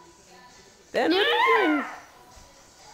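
A young girl laughs loudly close by.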